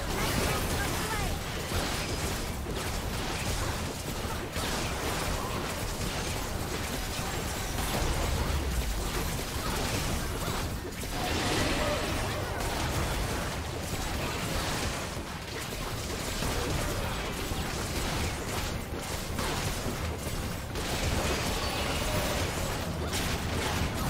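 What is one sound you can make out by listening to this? Fantasy battle sound effects of magic spells and blows clash steadily.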